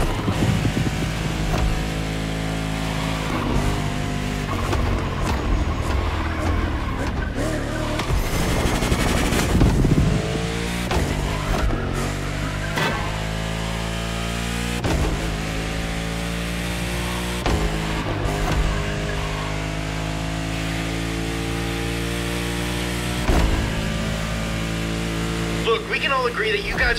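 A racing car engine roars loudly, climbing in pitch and dropping sharply as it shifts through gears.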